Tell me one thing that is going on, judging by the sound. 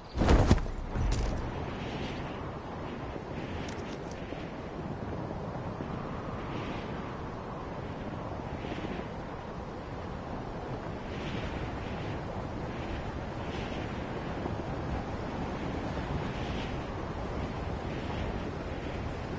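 Wind rushes steadily past a hang glider in flight.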